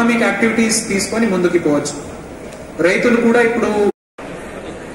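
A man speaks with animation through a loudspeaker in an echoing hall.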